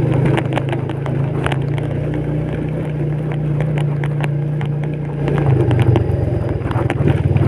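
A motorbike engine hums steadily and speeds up near the end.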